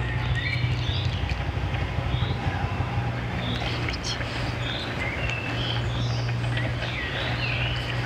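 A cat chews food.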